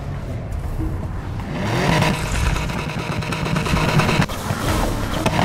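Several sports car engines rev at once.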